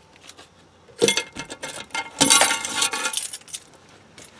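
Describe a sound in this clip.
A metal lid clicks and thuds shut.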